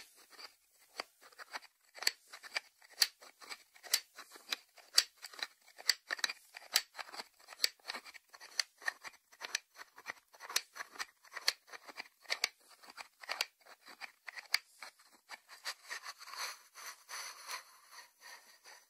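Fingertips tap on a ceramic lid.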